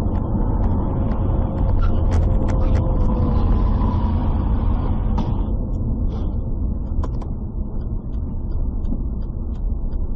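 Road noise rumbles from inside a moving car.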